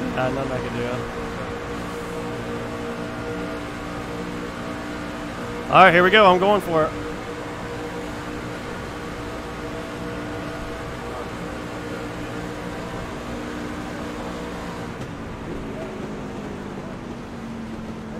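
A racing car engine drones steadily.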